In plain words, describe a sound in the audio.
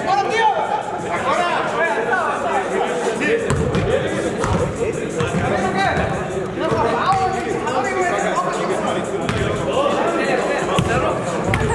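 Several men shout and call out to each other in a large echoing hall.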